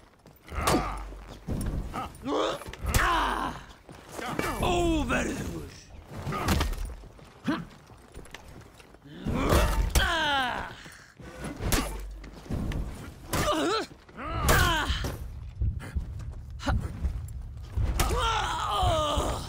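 Heavy weapons clash and strike in a fight.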